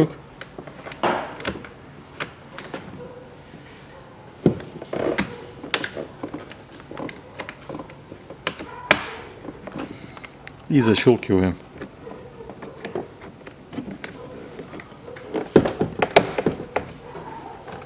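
Plastic trim creaks and scrapes as hands pull it from a car door.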